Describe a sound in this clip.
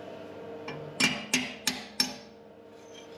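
A metal tool taps and clinks against metal.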